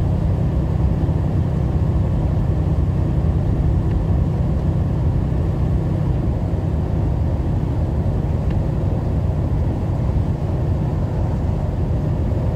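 Tyres roll on wet pavement with a steady rumble.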